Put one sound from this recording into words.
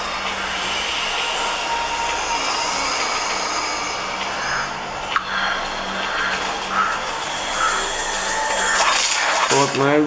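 Video game sounds play from a small device speaker.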